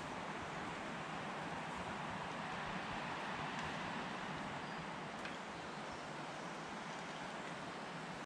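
Wind rustles the leaves of nearby trees.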